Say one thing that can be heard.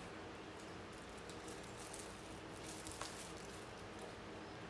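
A candy wrapper crinkles in someone's hands.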